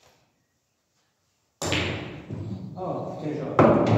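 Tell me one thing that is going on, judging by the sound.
A cue strikes a pool ball.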